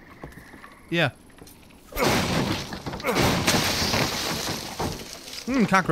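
A wooden crate splinters and cracks as it is smashed.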